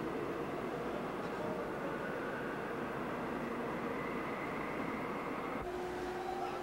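A subway train rumbles as it pulls into an echoing station.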